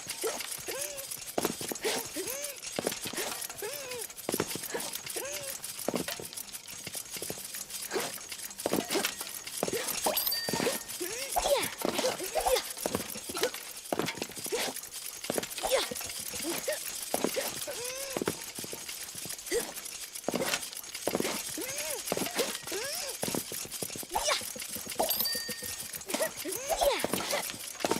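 Short springy sound effects play as a game character hops from block to block.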